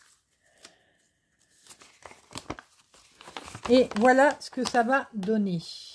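A paper leaflet rustles as it is unfolded by hand.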